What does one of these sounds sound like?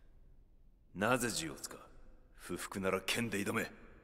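A deep-voiced man speaks firmly and sternly.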